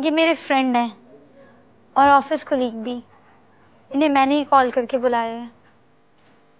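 A young woman speaks close by in a tense, emotional voice.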